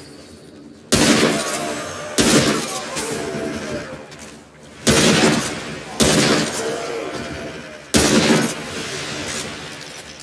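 Rifle shots ring out one at a time, each followed by a loud, echoing boom.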